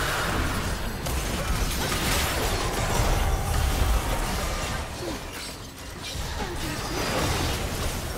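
Magic blasts and spell effects crackle and boom in a fast fight.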